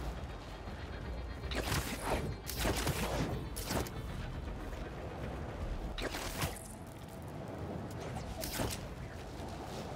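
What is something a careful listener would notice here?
Wind rushes past steadily, as if falling through the air.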